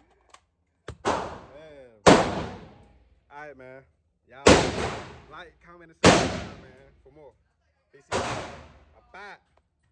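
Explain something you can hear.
Gunshots boom loudly and ring out in an echoing room.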